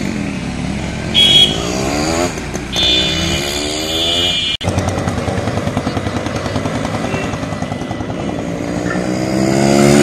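A motorcycle engine rumbles as it passes close by.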